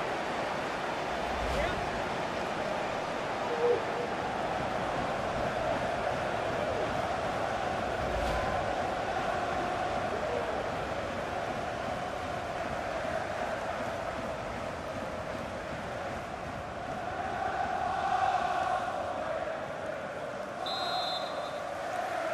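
A large stadium crowd murmurs and cheers steadily throughout.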